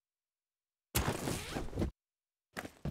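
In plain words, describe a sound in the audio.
A plastic case clicks and creaks open.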